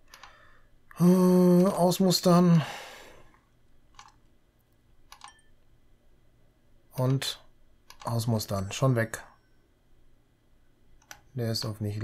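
A middle-aged man speaks calmly into a close microphone.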